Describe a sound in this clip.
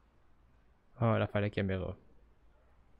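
A young man speaks a short line close to the microphone.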